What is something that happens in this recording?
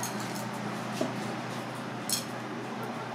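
A glass jar clinks softly.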